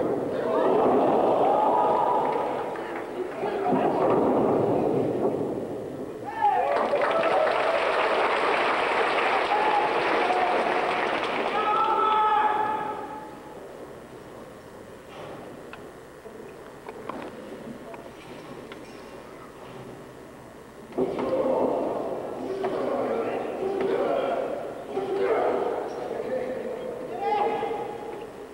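A large crowd cheers and shouts in an echoing arena.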